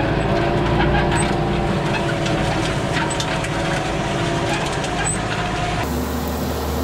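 A harrow rattles and clanks as it drags over dry soil.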